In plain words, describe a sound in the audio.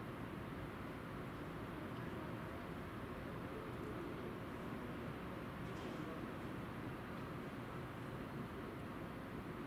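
A high-speed train rumbles steadily along the tracks.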